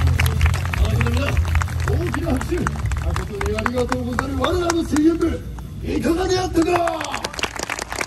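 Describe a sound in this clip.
A group of men shout and chant loudly in chorus.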